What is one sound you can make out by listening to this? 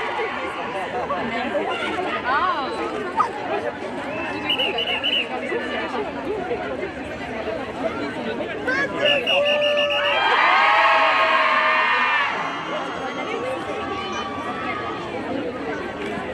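A crowd of people chatters and calls out loudly outdoors.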